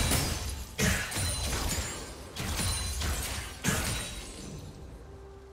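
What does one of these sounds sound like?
Magic spell effects burst and whoosh in a fast fight.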